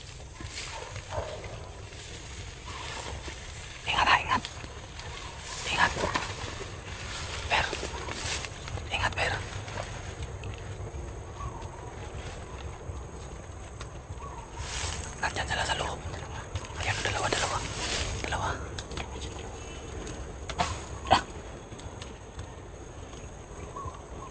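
Wind rumbles outdoors and rustles large leaves.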